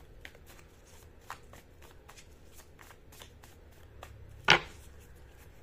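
Cards riffle and flick as a deck is shuffled.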